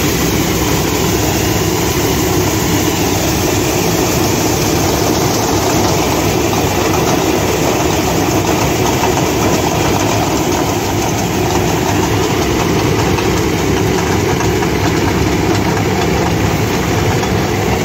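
A combine harvester engine roars steadily close by.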